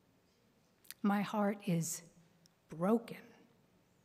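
A middle-aged woman speaks calmly into a microphone in an echoing hall.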